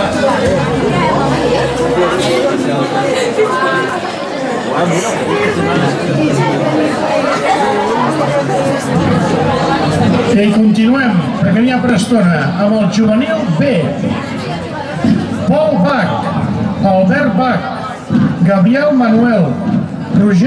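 A crowd of young men and boys chatter and call out outdoors.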